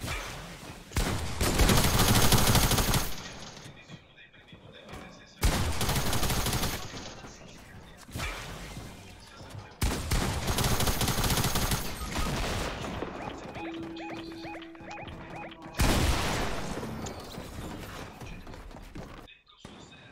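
Loud bursts of gunfire and building noises from a video game come and go.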